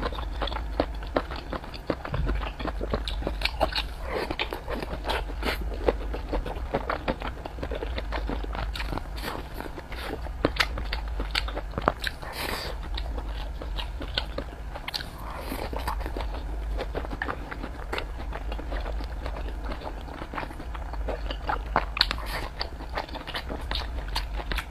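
A young woman chews food loudly and wetly, close to a microphone.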